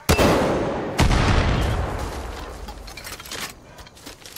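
An explosion booms and rumbles away.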